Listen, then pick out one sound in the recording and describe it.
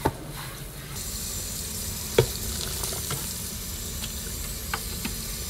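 Water pours and splashes into a metal strainer.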